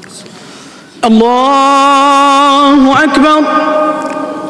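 An adult man chants in a long, drawn-out voice through a microphone and loudspeaker.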